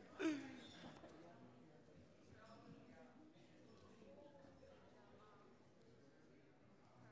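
Men and women chat quietly at a distance in an echoing hall.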